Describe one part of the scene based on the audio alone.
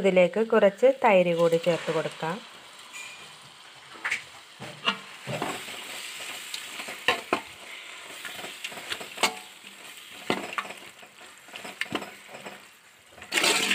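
A metal spoon scrapes and clinks against a cooking pot as food is stirred.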